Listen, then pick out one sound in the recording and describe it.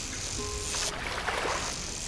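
Water splashes as a hooked fish thrashes near the surface.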